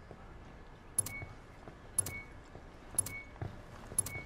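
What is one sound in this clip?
A countdown timer beeps once every second.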